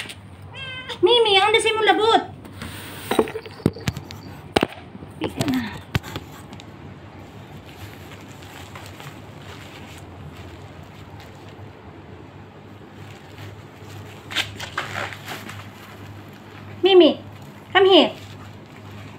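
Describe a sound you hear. A cat meows loudly and insistently, close by.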